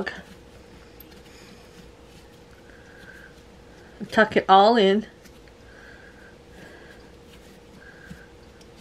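Hands knead and press soft dough.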